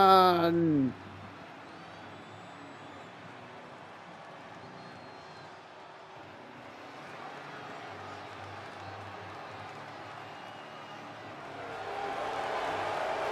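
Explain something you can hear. A large crowd cheers and murmurs in a big arena.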